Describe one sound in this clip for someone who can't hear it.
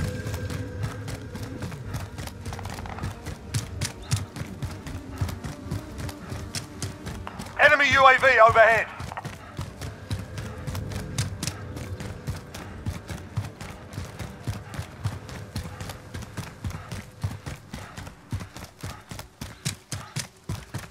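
Footsteps run quickly on pavement.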